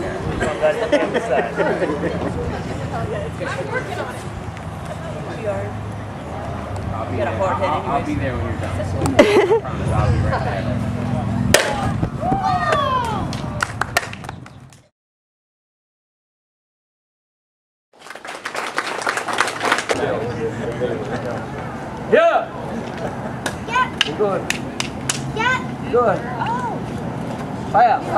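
A crowd of people talks and murmurs outdoors.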